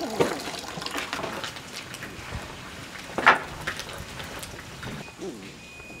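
Hot oil sizzles and crackles as food fries.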